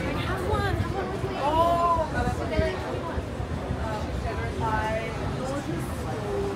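A man and a woman talk casually nearby.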